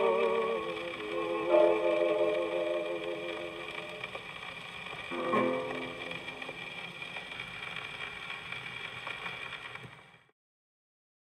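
An old gramophone plays a scratchy record of music.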